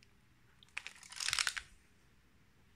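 A stiff album page flaps and rustles as it is turned.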